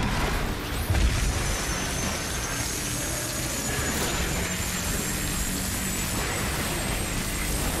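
An electric beam weapon crackles and hums steadily.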